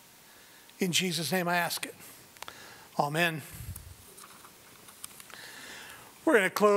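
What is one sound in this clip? A man speaks slowly and deliberately into a microphone in a large room.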